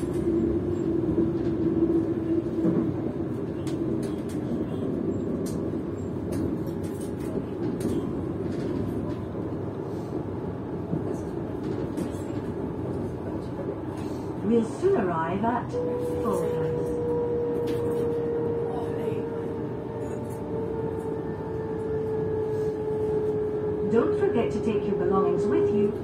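A passenger train rumbles along the tracks, heard from inside the carriage.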